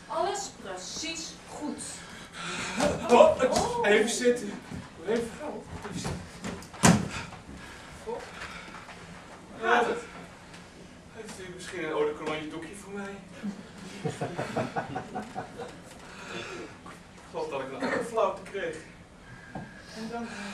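A man speaks on a stage, heard from a distance in a hall.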